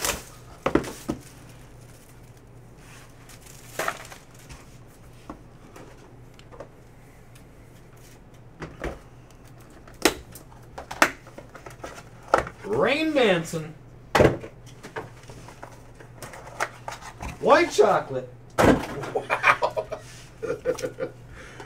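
Cardboard boxes knock and tap on a table.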